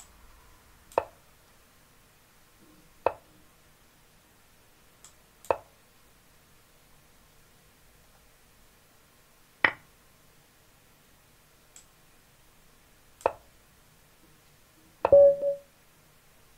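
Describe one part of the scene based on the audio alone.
A digital chess board plays a short click as each piece is moved.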